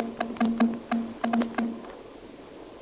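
Keyboard keys tap and click in quick succession.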